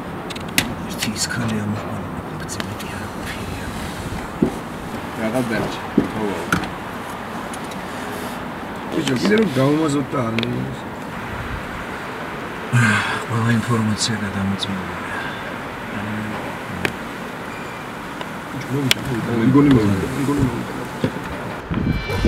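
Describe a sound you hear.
Young men talk casually close by.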